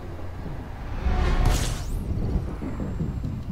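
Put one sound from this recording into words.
A loud whoosh surges up and fades as a spaceship drops out of a jump.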